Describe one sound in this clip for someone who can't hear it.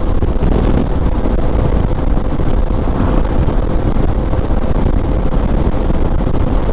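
Wind buffets loudly and steadily against a moving motorcycle.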